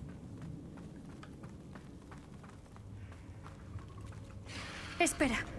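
Footsteps patter quickly on stone.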